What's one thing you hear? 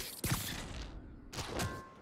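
A web line shoots out with a quick whoosh.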